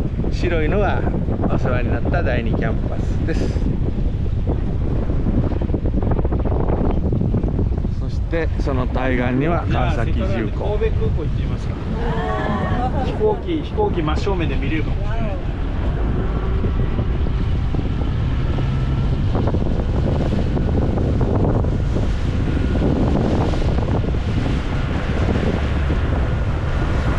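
A boat engine roars steadily.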